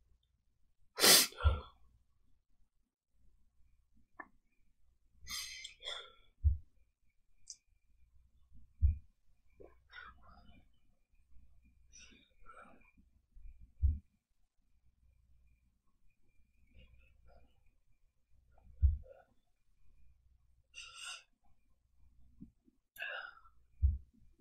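A young woman sniffles and sobs close by.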